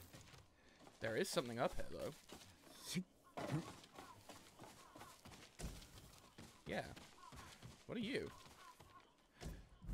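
Footsteps rustle through dense undergrowth.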